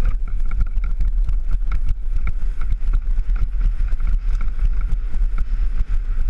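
Bicycle tyres rattle and crunch over a rough stony track.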